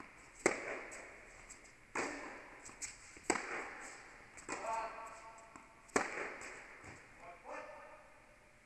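Tennis balls are struck with rackets, with sharp pops echoing in a large indoor hall.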